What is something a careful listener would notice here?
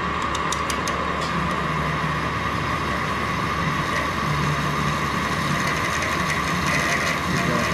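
A lathe motor hums steadily.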